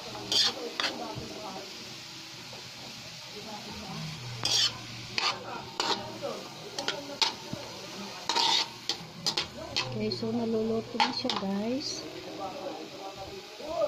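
Vegetables sizzle in a hot wok.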